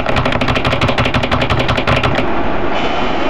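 Keyboard keys clack rapidly under fast typing.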